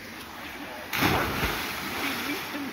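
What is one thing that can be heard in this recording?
A man plunges into water with a big splash.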